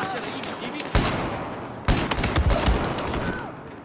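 Loud gunshots fire in quick bursts.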